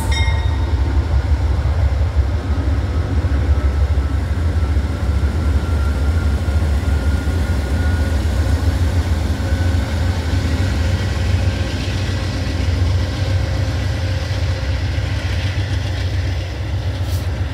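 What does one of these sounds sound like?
Diesel locomotive engines rumble loudly as a train passes close by.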